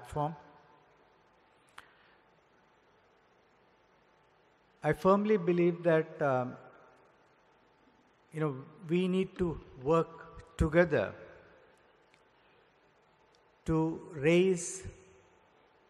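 An elderly man speaks calmly and slowly into a microphone, with pauses, in a room with a slight echo.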